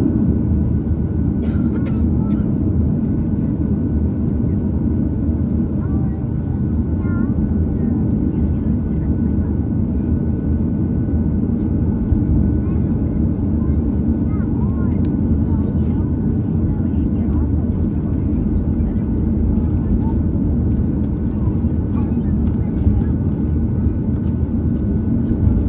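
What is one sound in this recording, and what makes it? Jet engines hum and roar steadily inside a taxiing plane's cabin.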